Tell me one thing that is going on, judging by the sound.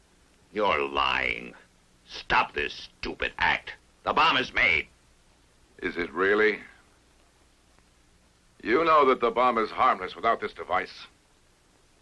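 A man speaks sternly and firmly, close by.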